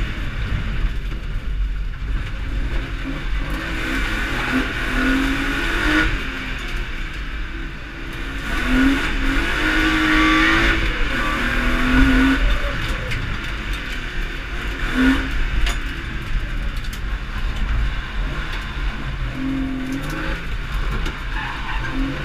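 Tyres squeal on a slippery track.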